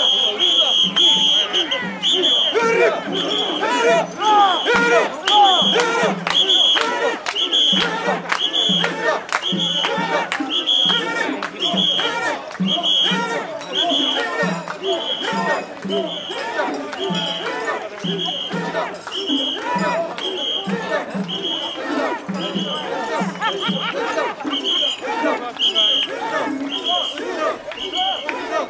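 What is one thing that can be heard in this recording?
A crowd of men chants loudly in a steady rhythm, outdoors.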